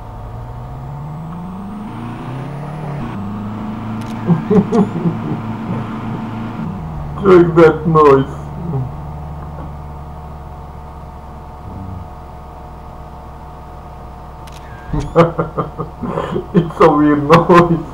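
A car engine hums steadily and rises in pitch as the car speeds up.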